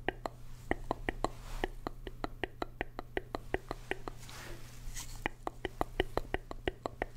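A man makes wet clicking mouth sounds through a cardboard tube, close to a microphone.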